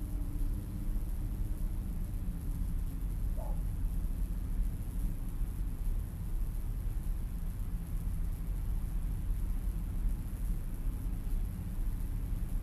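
Wind blows low and steady outdoors.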